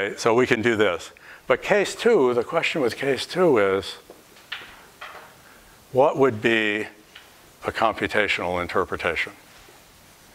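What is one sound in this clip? A middle-aged man speaks calmly, explaining at a close distance.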